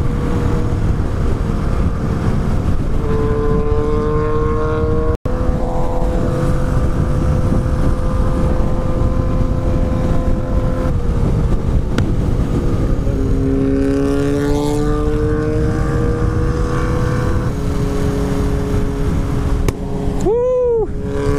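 Wind roars over a helmet microphone.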